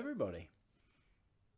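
A man speaks a brief cheerful word up close.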